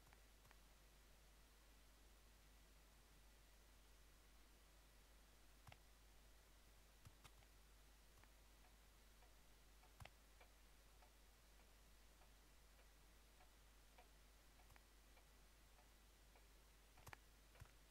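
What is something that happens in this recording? Boots scrape and tap softly on roof tiles.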